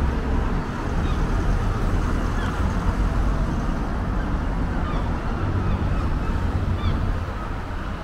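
A seagull calls overhead.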